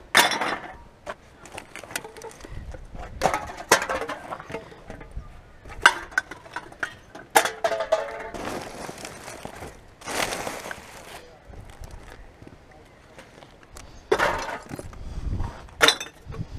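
Cans and bottles clatter together.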